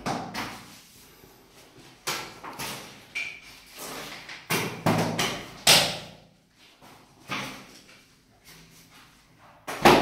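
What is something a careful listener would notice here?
Ceramic tiles knock and scrape against each other on a hard floor.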